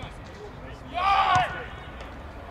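A man shouts loudly and sharply nearby.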